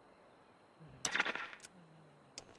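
A short electronic chime sounds as a menu opens.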